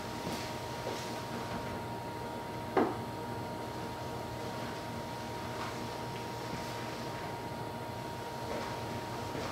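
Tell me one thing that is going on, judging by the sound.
A charging electric car hums with a steady low whine.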